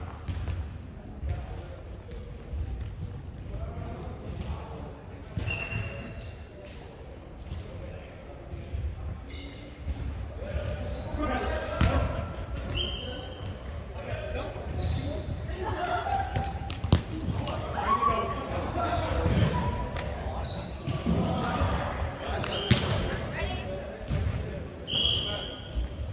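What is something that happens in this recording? A volleyball thuds off hands and arms.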